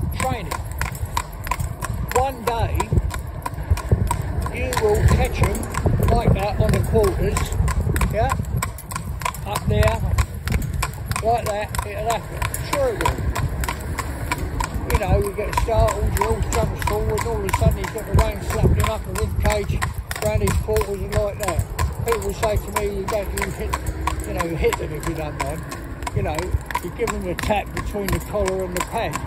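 Cart wheels rattle and roll along the road.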